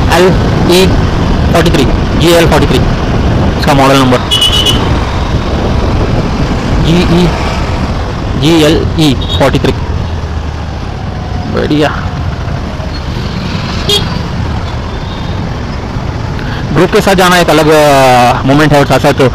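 Traffic rumbles all around on a busy street.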